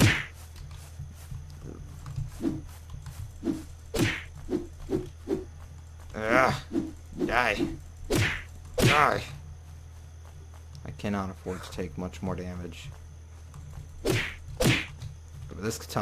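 Footsteps tread steadily over the ground.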